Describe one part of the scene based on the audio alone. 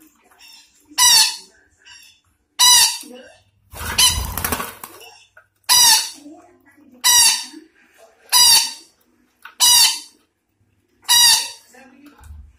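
A parrot screeches loudly, over and over, close by.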